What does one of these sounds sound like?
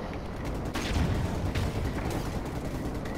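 An explosion booms and crackles with scattering debris.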